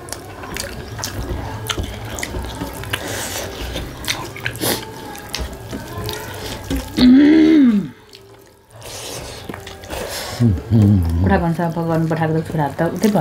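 A man chews and smacks his lips close by.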